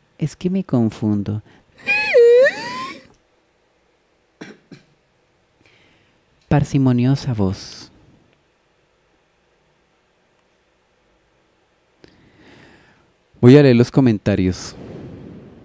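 A young man speaks gently, close by.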